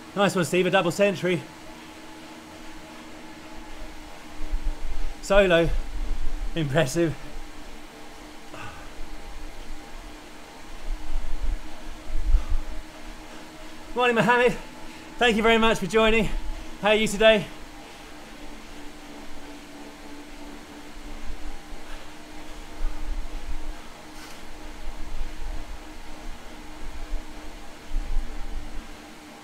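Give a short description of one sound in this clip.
A bike trainer hums low and steadily.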